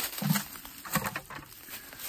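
Spruce branches rustle and brush close by.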